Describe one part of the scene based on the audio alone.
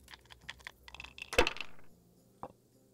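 Dice rattle in a wooden cup.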